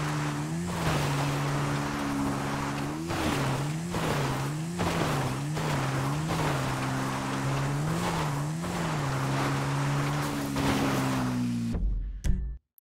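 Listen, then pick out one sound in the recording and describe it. A motorbike engine revs up and down.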